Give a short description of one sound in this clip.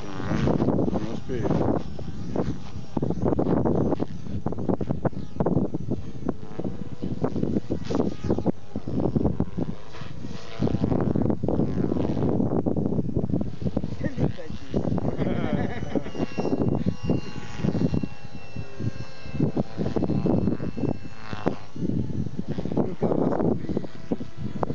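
A model helicopter's engine whines high overhead, rising and falling as it flies.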